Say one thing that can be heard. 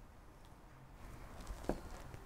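Gloved hands rustle softly as they smooth woven fabric.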